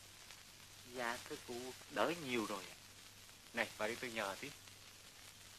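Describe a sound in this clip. An older man speaks with animation.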